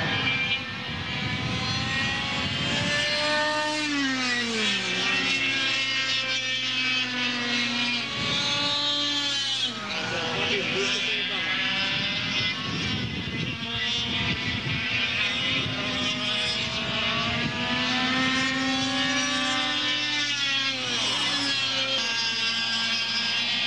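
Kart engines whine loudly, rising and falling in pitch as they race past.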